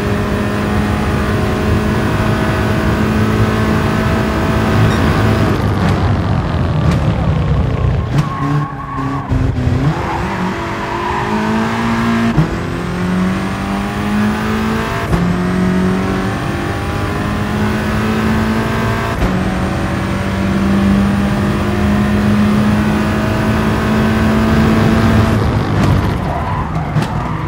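A racing car engine roars loudly and revs up through the gears.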